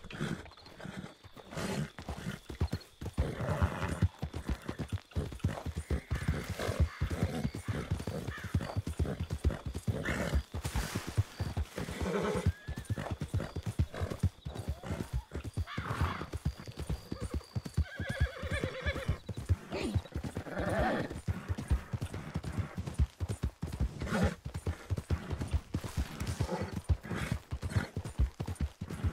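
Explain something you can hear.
A horse gallops, its hooves thudding rapidly on soft ground.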